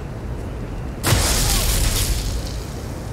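A crackling lightning spell bursts with a loud zap.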